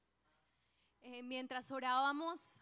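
A young man sings through a microphone.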